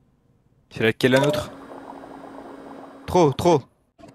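Liquid gurgles as a machine pumps it into a tube.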